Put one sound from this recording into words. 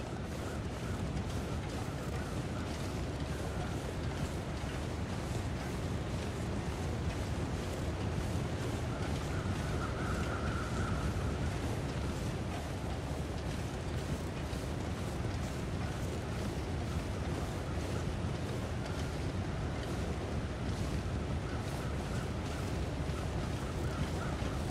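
Footsteps crunch through snow at a steady pace.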